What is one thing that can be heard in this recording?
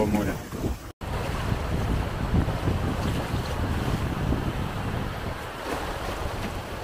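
Waves break and wash over a shore.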